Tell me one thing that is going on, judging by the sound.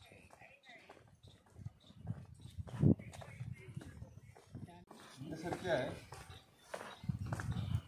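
Footsteps scuff on stone paving.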